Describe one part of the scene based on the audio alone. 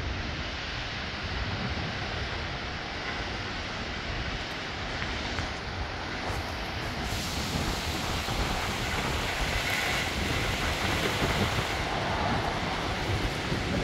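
Wind gusts through trees.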